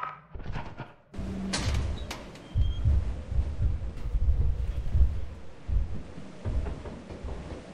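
Heavy footsteps thud on hard ground.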